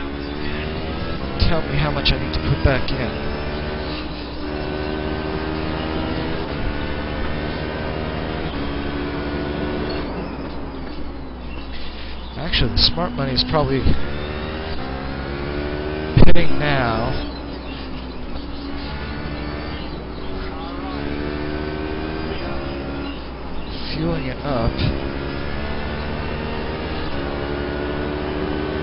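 A racing car engine roars steadily, its pitch climbing and dropping as the gears shift.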